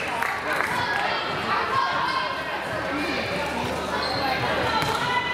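A crowd of spectators talks and calls out in an echoing gym.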